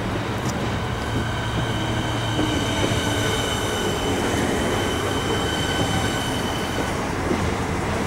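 Train brakes squeal with a high whine.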